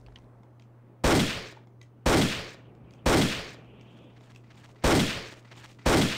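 Pistol shots ring out one at a time, each followed by a short echo.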